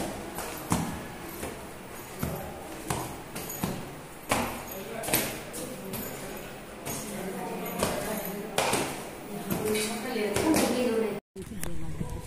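Footsteps climb a staircase.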